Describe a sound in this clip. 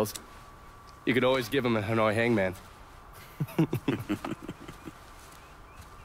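A man answers in a relaxed voice.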